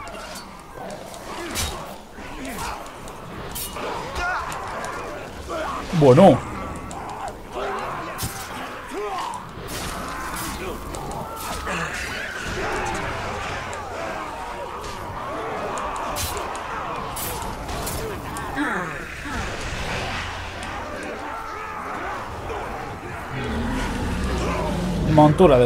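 A horde of creatures growls and snarls.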